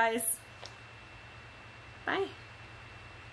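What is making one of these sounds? A young woman makes brief soft vocal sounds close by.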